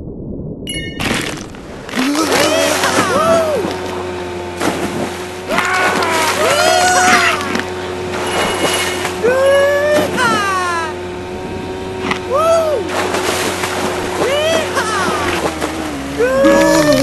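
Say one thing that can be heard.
Water splashes loudly again and again as a large shark leaps out and crashes back in.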